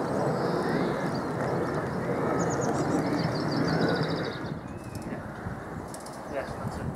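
A steam locomotive hisses steam nearby, outdoors in light wind.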